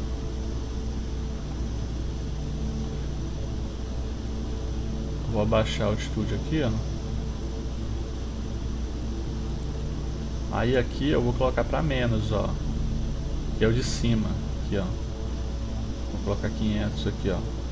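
Turboprop engines drone steadily.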